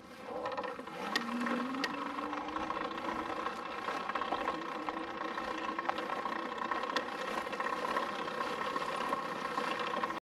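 Dry grass crunches under tyres and footsteps.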